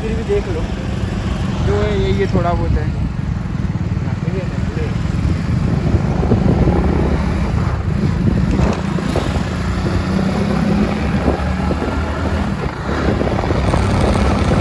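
A motor scooter engine hums steadily while riding.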